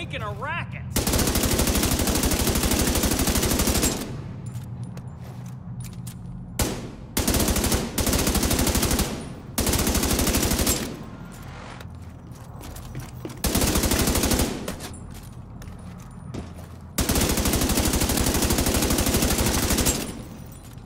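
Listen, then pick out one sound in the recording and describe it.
A rifle fires in rapid bursts, echoing in an enclosed space.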